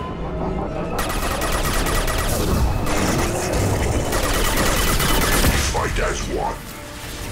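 Gunfire crackles rapidly in a game.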